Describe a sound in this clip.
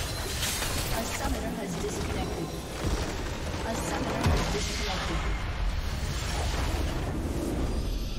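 Game spell effects crash and whoosh loudly.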